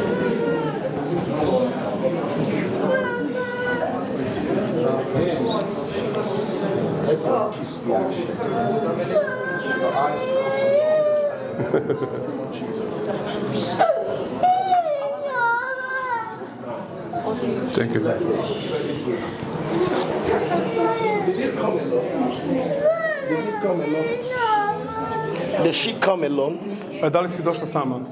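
A man preaches with animation through a loudspeaker in a reverberant hall.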